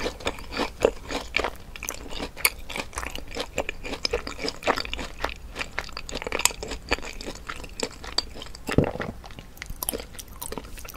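Fingers tear apart a deep-fried cheese ball, its crisp crust crackling.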